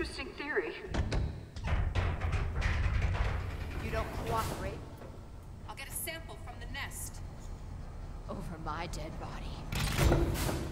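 A woman answers with a cool, teasing voice.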